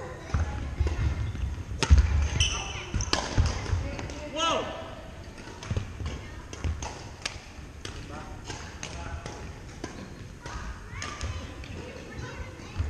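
Paddles knock a plastic ball back and forth in a large echoing hall.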